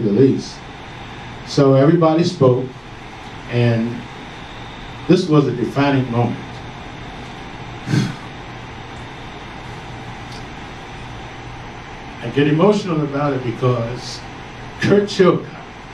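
An elderly man speaks with animation through a microphone and loudspeakers, pausing often.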